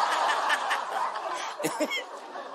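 An audience laughs and claps loudly.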